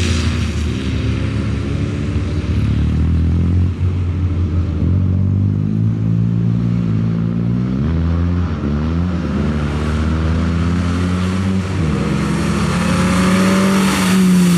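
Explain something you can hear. A small car engine revs hard, rising and falling as gears change.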